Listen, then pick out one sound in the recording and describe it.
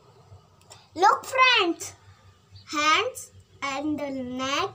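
A young child speaks loudly and with animation close by.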